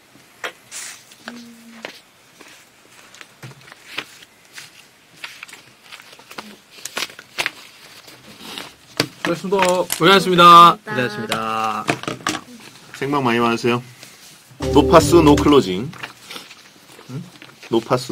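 Paper rustles.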